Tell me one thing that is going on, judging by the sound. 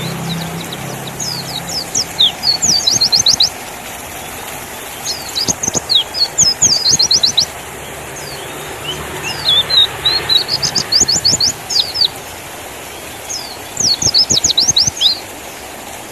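A small bird sings close by in quick bursts of high, sharp chirps and trills.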